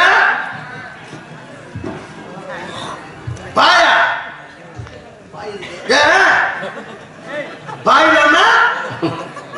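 A young man sings loudly into a microphone over a loudspeaker, in long held phrases.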